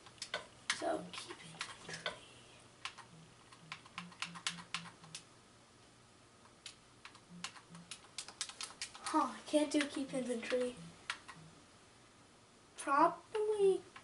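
Short soft clicks tick as a game menu selection moves.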